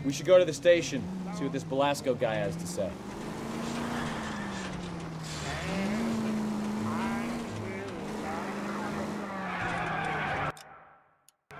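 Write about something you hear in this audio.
A car engine hums steadily as the car drives along, rising and falling slightly in pitch.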